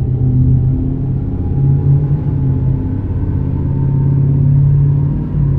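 Tyres roll on a highway with a low rumble.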